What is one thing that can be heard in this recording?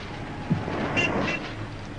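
A sewing machine whirs and clatters.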